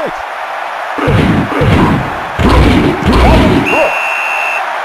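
Football players collide in a tackle with heavy thuds.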